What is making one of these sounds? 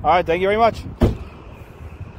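A car trunk lid slams shut with a loud thud.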